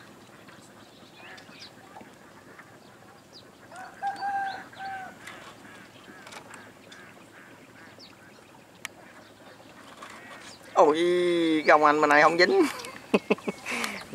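Water splashes softly as a net is lifted and shaken.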